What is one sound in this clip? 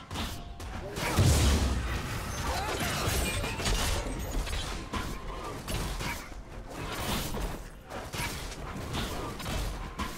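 Game characters clash with magic blasts and sword strikes.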